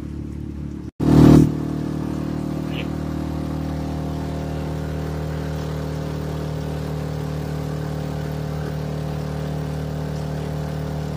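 Water churns and splashes behind a motorboat.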